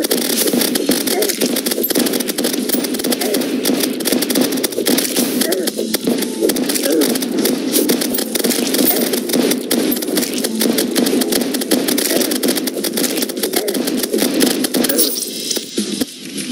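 Rapid electronic gunfire clatters without pause.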